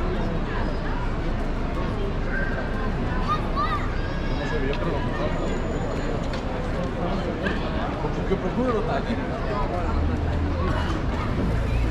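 A crowd of people chatters outdoors in a busy square.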